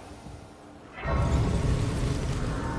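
A bright shimmering chime swells and rings out.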